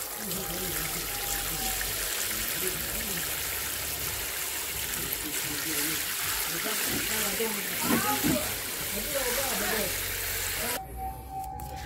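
Water from a watering can splashes steadily onto food scraps in a bucket.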